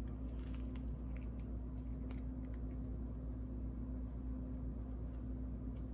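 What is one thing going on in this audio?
Plastic wrap crinkles softly as it is peeled away.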